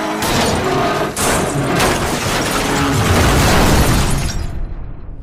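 An armoured truck skids and crashes with a loud metal smash.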